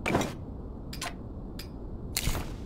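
Short menu clicks tick.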